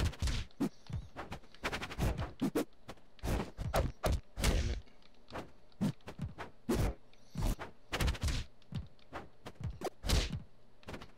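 Fast swooshes of attacks cut through the air.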